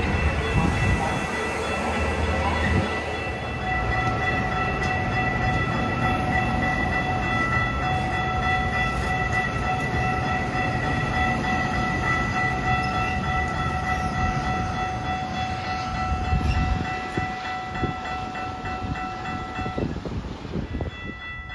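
A train rolls past close by with a low, rumbling clatter of wheels on rails.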